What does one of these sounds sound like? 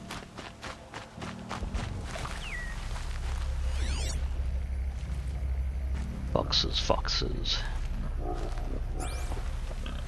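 Leaves rustle as someone creeps through dense undergrowth.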